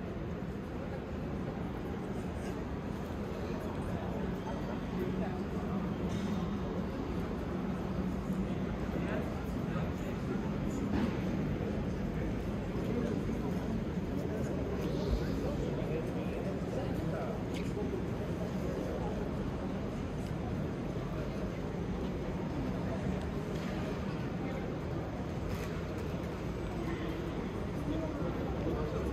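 A crowd murmurs faintly in the distance outdoors.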